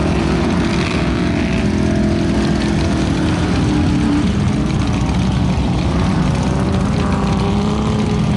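A truck engine roars and revs loudly nearby.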